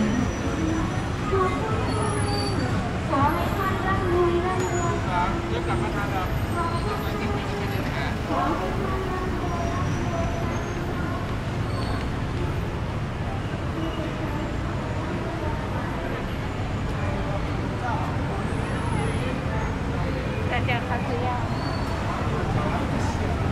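City traffic hums and rumbles steadily outdoors.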